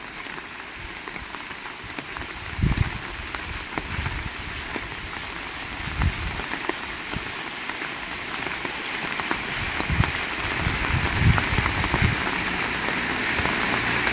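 Steady rain falls outdoors, pattering on wet pavement.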